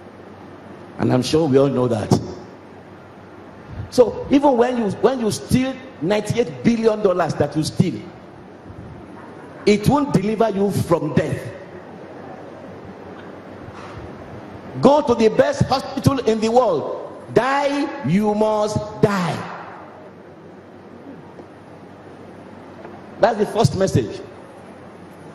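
A man preaches through a microphone with animation, in bursts separated by pauses.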